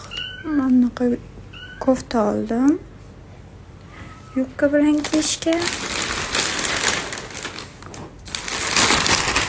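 Fabric rustles and crumples as clothes are handled close by.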